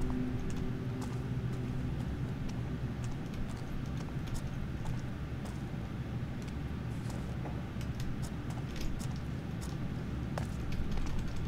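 Footsteps creak on wooden boards.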